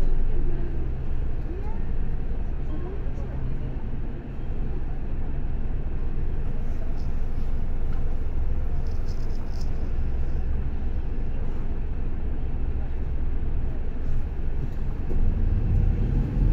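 A bus engine rumbles steadily, heard from inside.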